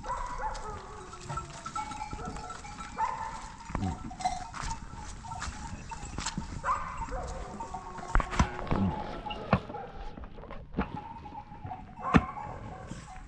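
A stick scrapes and knocks against dry, stony ground.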